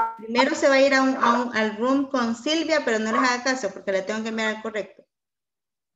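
A young woman speaks with animation through a headset microphone on an online call.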